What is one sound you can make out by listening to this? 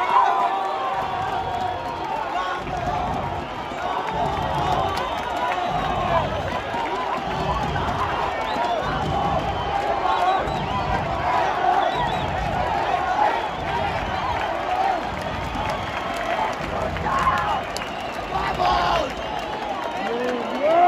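Fans clap in rhythm.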